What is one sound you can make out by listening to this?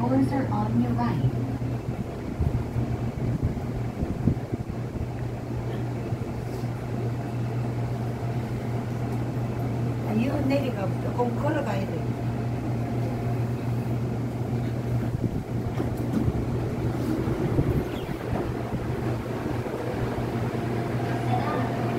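A subway train hums and rumbles steadily as it rolls along the track.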